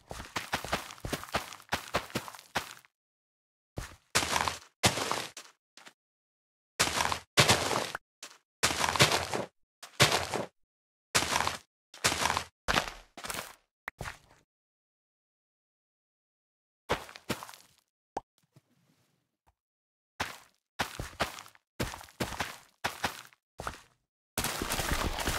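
Plants snap and rustle in quick bursts as crops are harvested in a video game.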